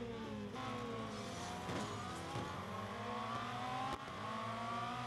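Racing car engines roar and whine, rising in pitch as they speed up.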